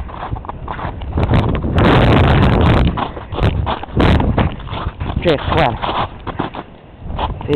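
Footsteps crunch on icy snow close by.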